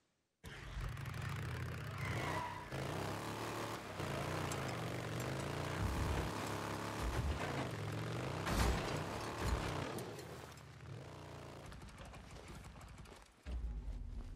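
A motorcycle engine rumbles and revs as the bike rides over rough ground.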